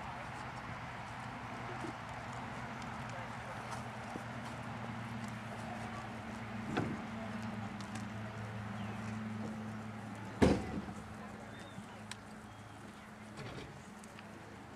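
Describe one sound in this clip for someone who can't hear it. A horse's hooves thud softly on sand at a walk.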